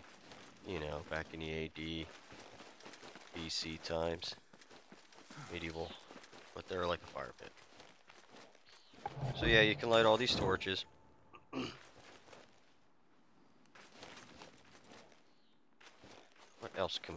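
Footsteps crunch on sand and gravel.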